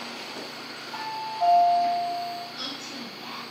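An elevator chime rings two tones.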